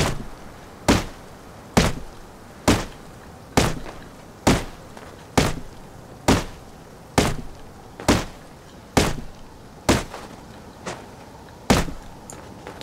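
A stone hatchet chops into a tree trunk with steady, regular thuds.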